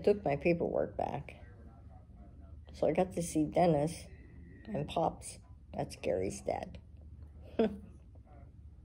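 An elderly woman talks calmly, close to the microphone.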